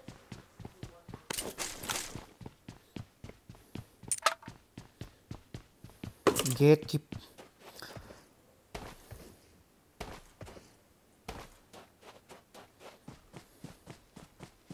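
Footsteps patter steadily on hard ground.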